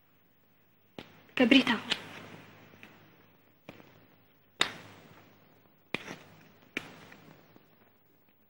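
Small metal clicks sound as a pendant is handled.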